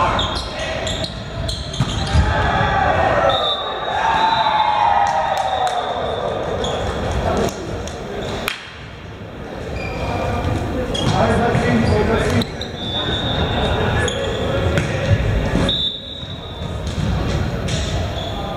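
Young men call out and shout to each other in a large echoing hall.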